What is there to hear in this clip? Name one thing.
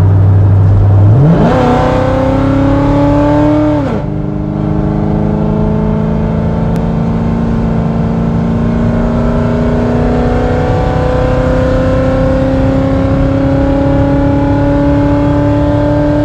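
A car engine revs hard, climbing in pitch through the gears.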